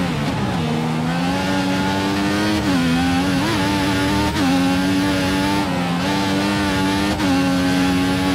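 A racing car engine screams at high revs, dropping briefly with each gear change.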